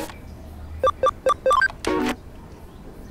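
Short electronic beeps chime quickly in a row.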